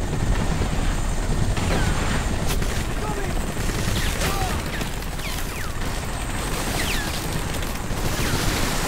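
Helicopters rumble low and steadily.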